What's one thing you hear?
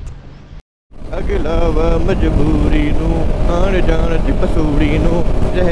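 A motorcycle engine hums steadily, rising and falling in pitch as it rides along.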